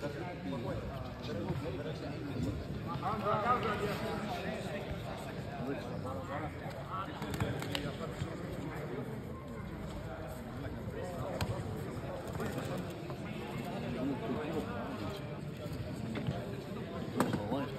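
Men and women chatter at a distance in a large echoing hall.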